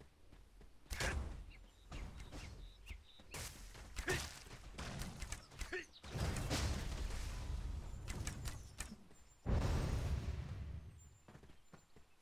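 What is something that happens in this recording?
Game combat effects crash and whoosh in short loud bursts.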